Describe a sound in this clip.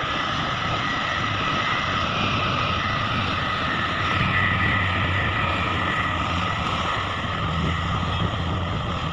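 A heavy diesel dump truck drives past with its engine rumbling.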